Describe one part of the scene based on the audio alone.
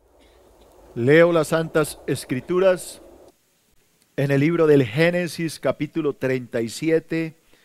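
A middle-aged man speaks with emphasis through a microphone.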